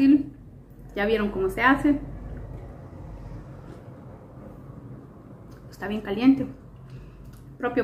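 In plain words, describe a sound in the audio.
A woman sips a drink.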